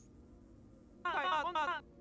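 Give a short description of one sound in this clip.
A quick run of warbling electronic tones plays near the end.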